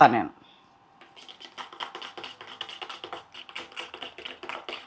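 A fork clinks rapidly against a metal bowl while whisking eggs.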